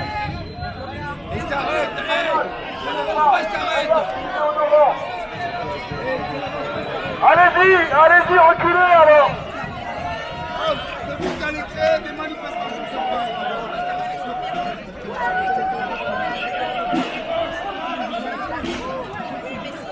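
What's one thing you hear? A crowd of people shouts and chants outdoors.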